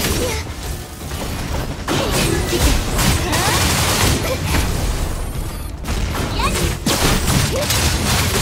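Electric blasts crackle and zap in a fast fight.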